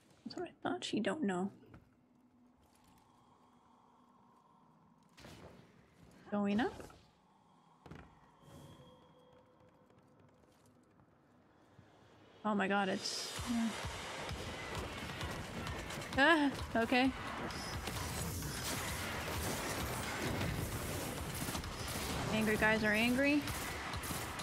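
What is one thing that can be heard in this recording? A young woman talks with animation into a nearby microphone.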